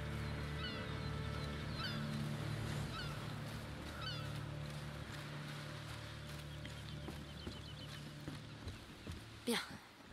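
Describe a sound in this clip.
Footsteps crunch on sand.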